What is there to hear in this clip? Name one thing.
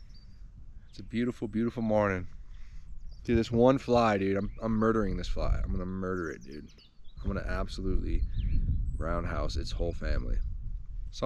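A young man talks casually and close by.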